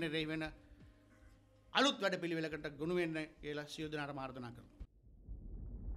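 A middle-aged man speaks firmly into microphones.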